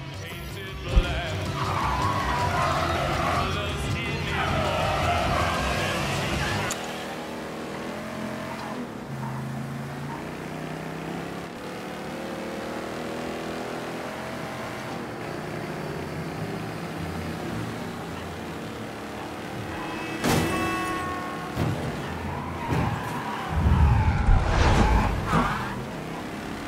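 A car engine roars as the car speeds along.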